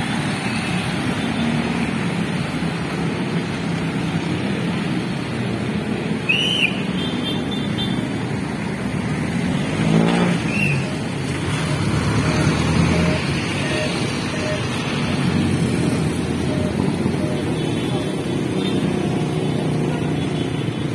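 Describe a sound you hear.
Motorcycles and cars pass by steadily on a busy road outdoors.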